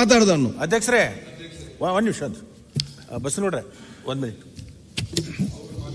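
A middle-aged man speaks firmly into a microphone in a large hall.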